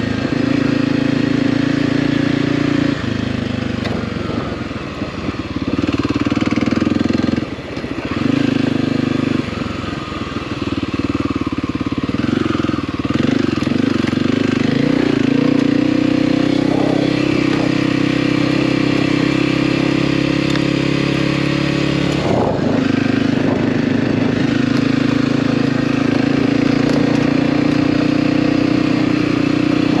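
A dirt bike engine drones steadily, rising and falling as the rider shifts and throttles.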